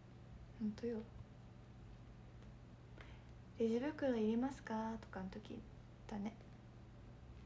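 A young woman speaks softly and brightly close to a microphone.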